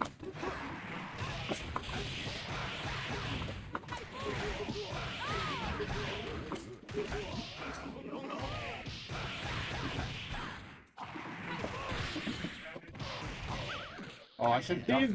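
Video game punches and blasts land in rapid bursts.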